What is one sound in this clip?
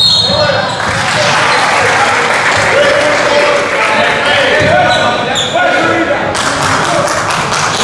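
A crowd cheers in an echoing gym.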